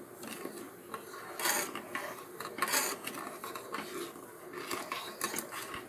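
A spoon stirs and clinks against a metal pot.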